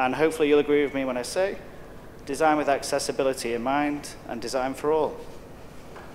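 A young man speaks calmly into a microphone in a large hall.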